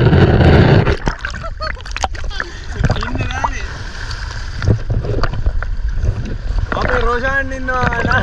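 Small waves lap and splash around a man.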